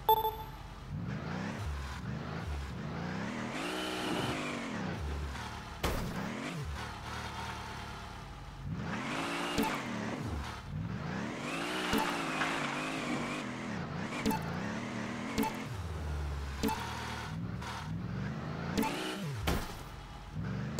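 A truck engine revs and roars, rising and falling in pitch.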